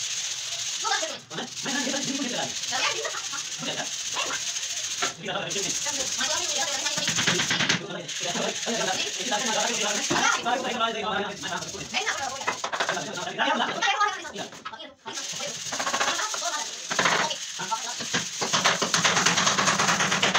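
Boys talk with animation close by.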